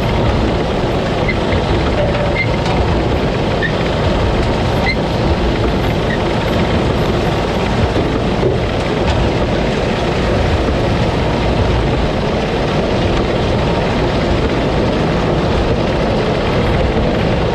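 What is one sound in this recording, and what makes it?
A combine harvester engine roars loudly and steadily close by.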